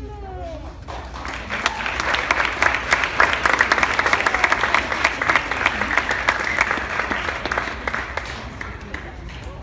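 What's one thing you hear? An audience applauds and cheers in a large echoing hall.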